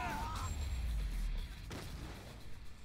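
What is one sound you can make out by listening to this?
Heavy punches thud against a body.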